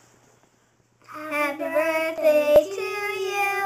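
Young girls sing loudly together close by.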